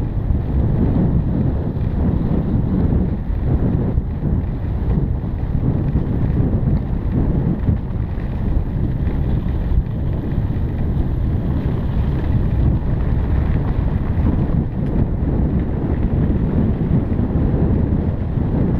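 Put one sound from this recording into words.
A motorbike engine rumbles steadily.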